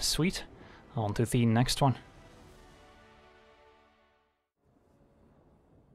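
A short triumphant musical sting rings out and fades.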